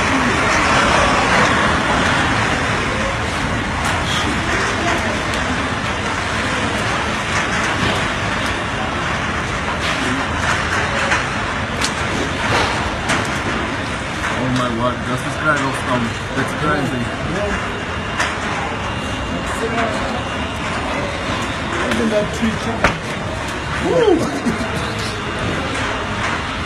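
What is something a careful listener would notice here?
Strong wind roars and howls outdoors in a storm.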